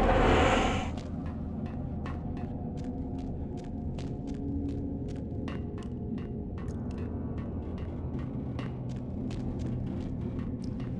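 Footsteps walk steadily on stone in an echoing tunnel.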